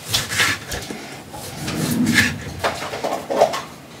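A knife cuts through a lemon on a cutting board.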